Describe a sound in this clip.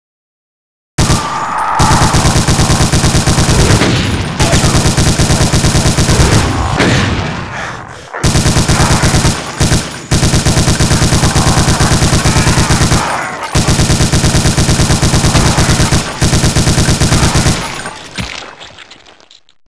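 A machine gun fires in long, rapid bursts.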